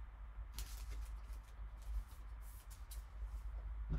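A plastic sleeve crinkles as a card slides out of it.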